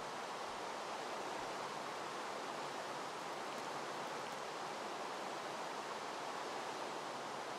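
Steady rain falls and hisses.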